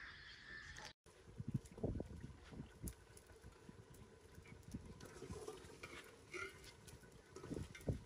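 A metal ladle scrapes and clinks against a metal pot while stirring.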